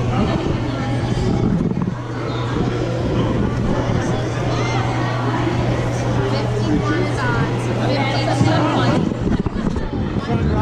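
Children's voices chatter and echo in a large hall.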